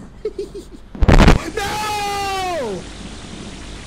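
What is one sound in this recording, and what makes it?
A young man screams loudly into a microphone.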